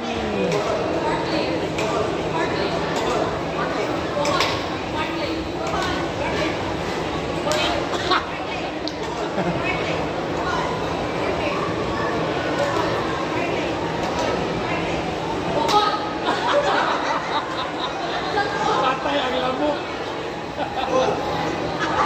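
A woman speaks into a microphone over loudspeakers, echoing in a large hall.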